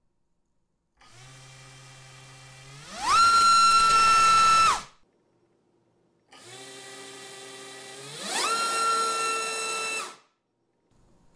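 A small electric motor spins up to a high, loud whine, holds it, then winds down.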